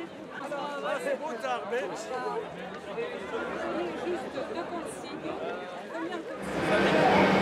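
A crowd of teenagers chatters outdoors.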